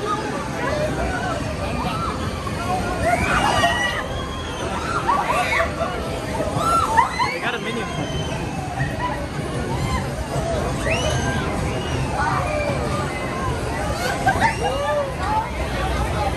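Riders on a swinging amusement ride scream and shout.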